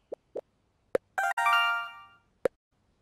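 A short chime rings as a purchase goes through.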